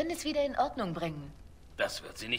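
A young woman speaks calmly and close.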